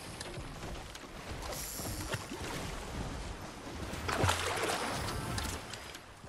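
Water splashes as a game character wades through a lake.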